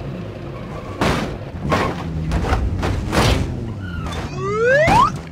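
Car tyres thump heavily down stone steps.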